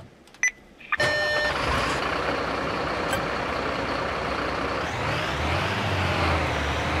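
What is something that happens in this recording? A fire engine's motor starts and runs with a loud, steady roar.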